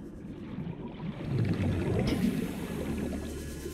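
Bubbles rush and gurgle up through water.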